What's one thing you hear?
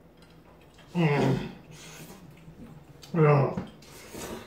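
A man groans loudly with his mouth full.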